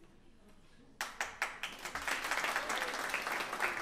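A man claps his hands sharply a few times.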